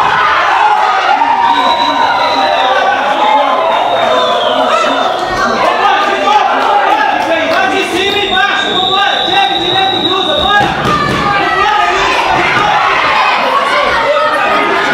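Spectators shout and cheer close by.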